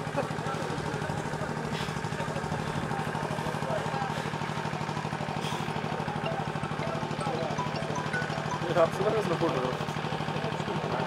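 A large outdoor crowd murmurs and chatters.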